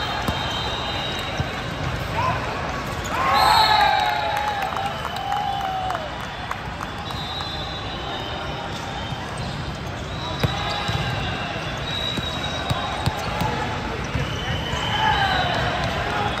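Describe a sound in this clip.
Shoes squeak sharply on a wooden court floor.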